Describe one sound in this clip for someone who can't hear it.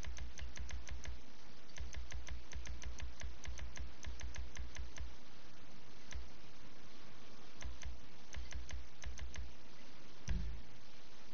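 Short menu clicks tick in quick runs.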